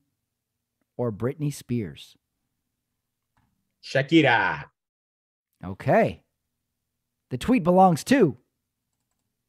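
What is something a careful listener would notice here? A man speaks over an online call in short bursts with pauses between them.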